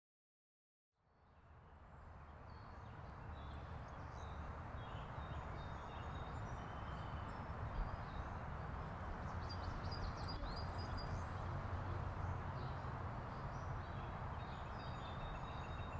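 Wind rustles through leafy trees outdoors.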